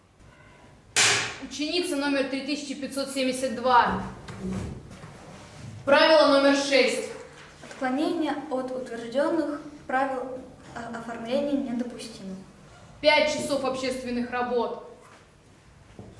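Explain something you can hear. A young girl speaks calmly close by.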